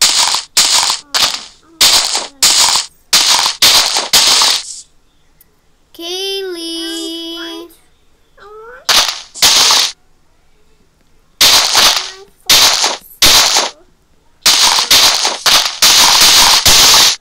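Dirt blocks crunch in quick bursts as they are dug and placed.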